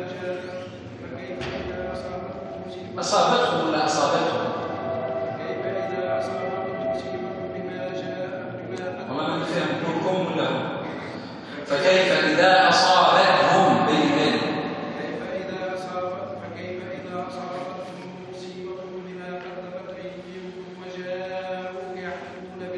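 A middle-aged man speaks with animation, close by, in a room with some echo.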